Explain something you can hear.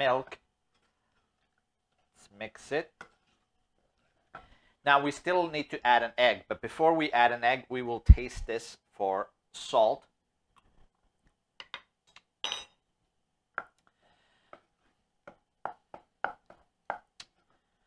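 A wooden spoon stirs and scrapes in a pot.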